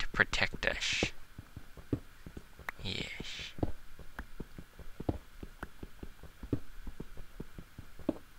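A pickaxe taps repeatedly at stone.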